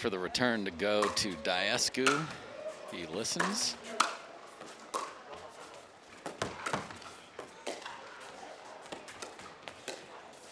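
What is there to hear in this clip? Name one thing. Paddles strike a plastic ball with sharp, hollow pops in a quick back-and-forth rally.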